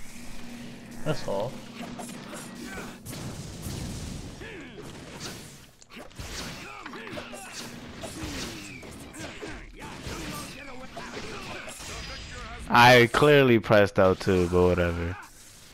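Sharp blows and slashes crack and whoosh in a fast fight.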